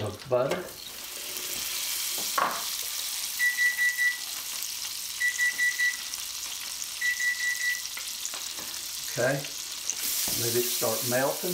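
Butter sizzles in a hot pan.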